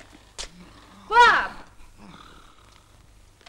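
A young woman speaks briefly, close by.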